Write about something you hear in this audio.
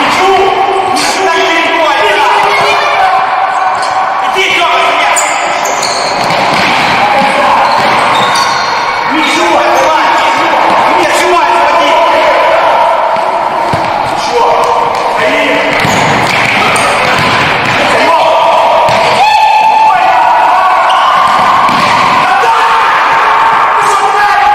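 A ball thuds as players kick it.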